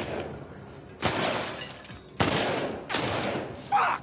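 Loud pistol shots ring out with a short echo.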